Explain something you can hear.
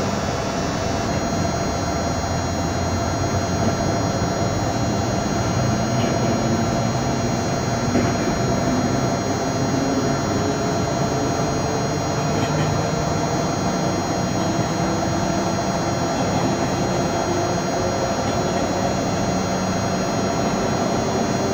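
Train wheels rumble and clack over rail joints.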